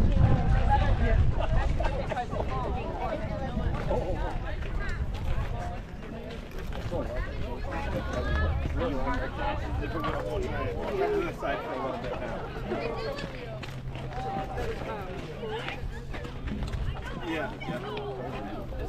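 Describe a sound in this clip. Young women call out and chatter across an open field outdoors.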